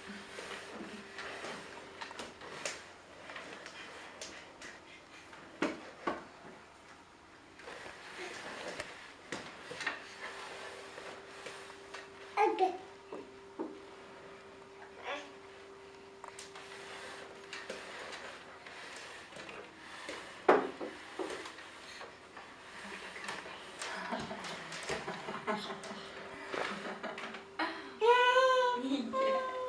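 A wooden chair scrapes and bumps across a wooden floor.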